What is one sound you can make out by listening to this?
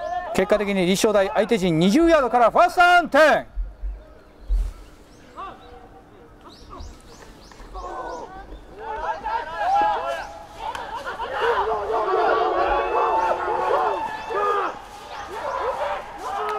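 Young men on a sideline shout and cheer outdoors.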